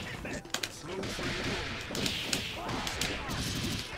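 Video game punches and blows land with sharp smacks.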